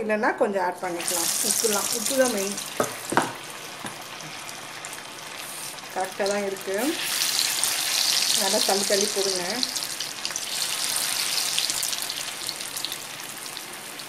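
Chicken pieces sizzle and bubble as they deep-fry in hot oil.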